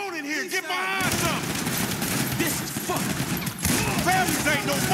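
Gunshots ring out rapidly in a large echoing hall.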